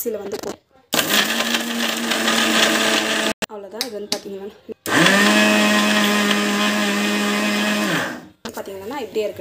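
A blender motor whirs loudly in short bursts, grinding food.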